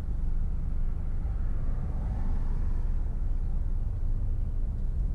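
A car engine hums steadily with road rumble from inside a moving car.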